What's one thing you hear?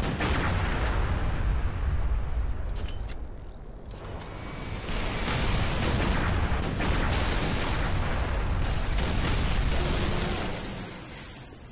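An energy weapon fires rapid buzzing bursts.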